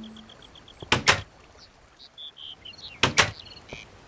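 A wooden door knocks open and shut.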